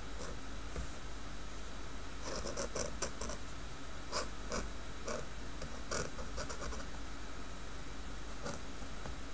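A pen scratches on paper in short strokes.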